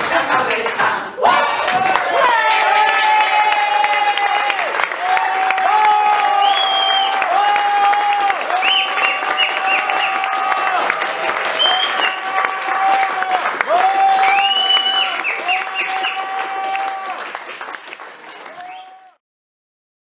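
A group of women sing together.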